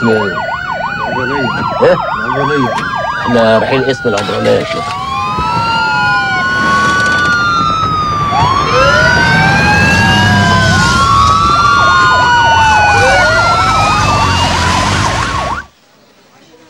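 Police sirens wail and sweep up and down loudly.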